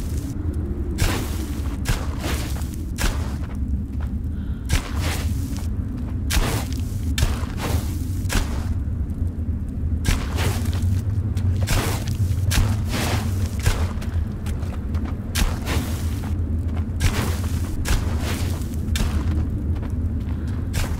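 Footsteps squelch and splash through shallow water and mud.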